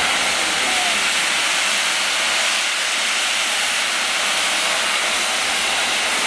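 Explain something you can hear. Steam jets out with a loud, rushing hiss.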